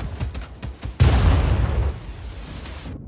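A heavy splash crashes into water.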